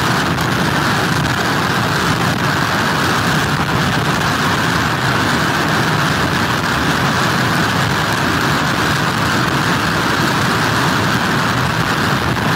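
Storm waves crash and churn steadily on the shore.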